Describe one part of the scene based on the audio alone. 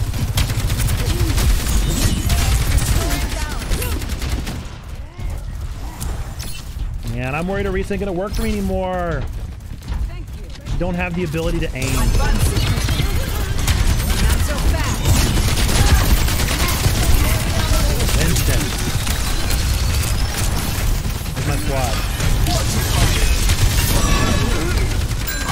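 A man talks with animation into a close microphone.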